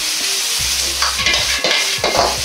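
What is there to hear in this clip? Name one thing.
Food is tossed in a wok with a rushing swish.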